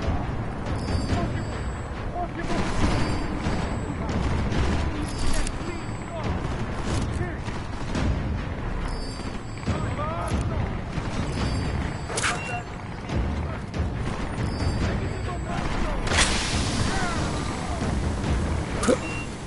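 Gunshots crack sharply now and then.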